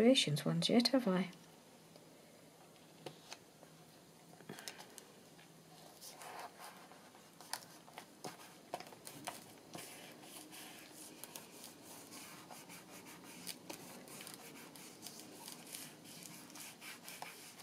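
Paper rustles and crinkles as it is folded and pressed down by hand.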